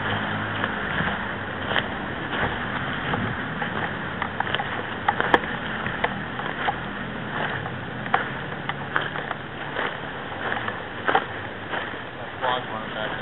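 Footsteps crunch on dry, rocky ground.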